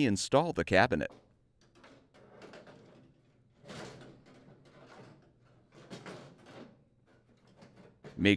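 A metal panel scrapes and rattles as it is lifted and set down.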